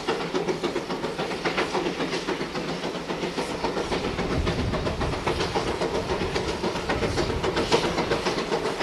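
A steam locomotive chuffs rhythmically as it hauls a train uphill.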